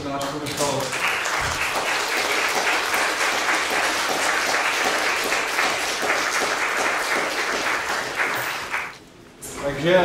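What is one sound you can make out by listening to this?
An audience claps in steady applause.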